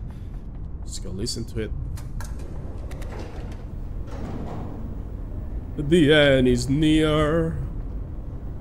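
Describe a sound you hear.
A man talks briefly into a close microphone.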